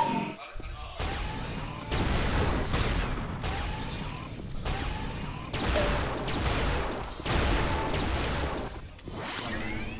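Energy weapons fire in loud, rapid hissing bursts.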